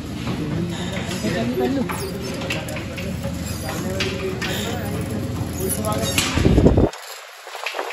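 A conveyor machine hums and rattles steadily.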